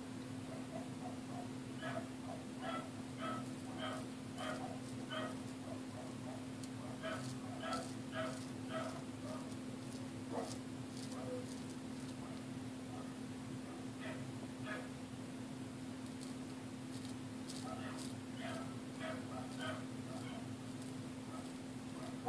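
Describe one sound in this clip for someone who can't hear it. A razor scrapes through stubble close by.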